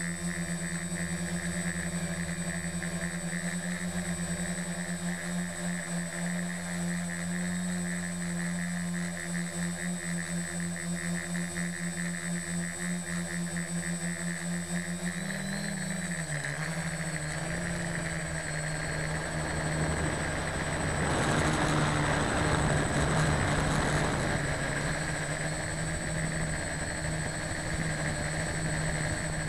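Air rushes past the aircraft, louder for a few seconds.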